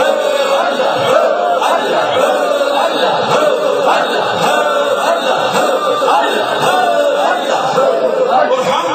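A man chants loudly into a microphone, heard through loudspeakers in an echoing room.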